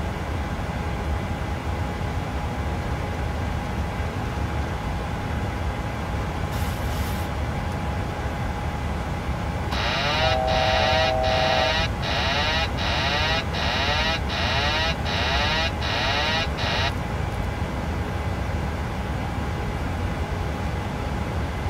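A steady low engine roar fills an aircraft cockpit.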